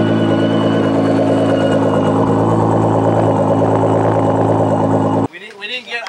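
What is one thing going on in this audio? A sports car engine idles loudly with a deep, steady rumble from the exhaust.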